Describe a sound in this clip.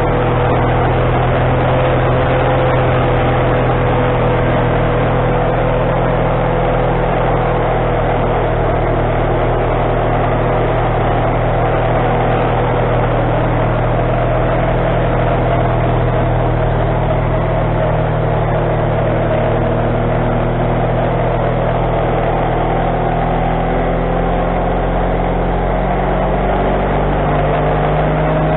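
An engine drones steadily close by.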